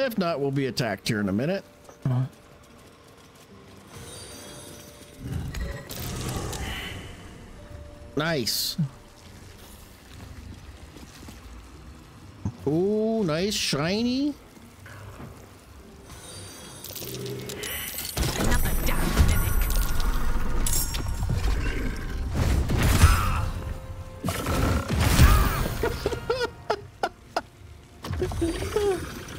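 An older man talks with animation close to a microphone.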